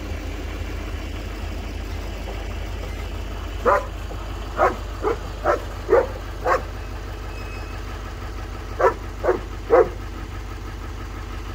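A pickup truck's engine rumbles as the truck slowly moves forward.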